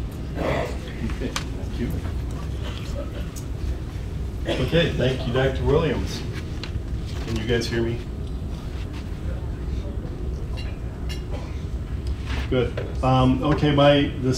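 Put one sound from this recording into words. A middle-aged man speaks calmly through a microphone in a large room.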